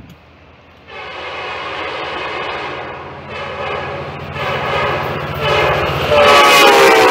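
A locomotive engine rumbles deeply as it passes close by.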